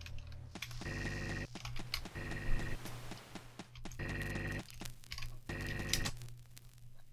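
Short electronic tones beep in a repeating pattern.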